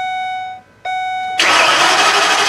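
A car's warning chime sounds in a steady tone.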